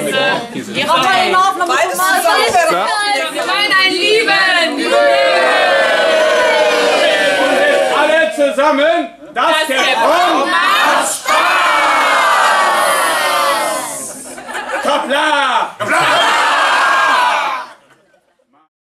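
A large crowd of men and women shout and cheer together.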